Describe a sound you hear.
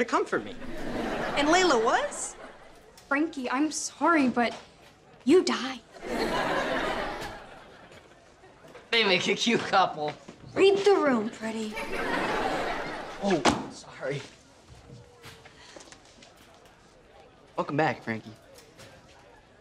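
A young woman speaks with emotion.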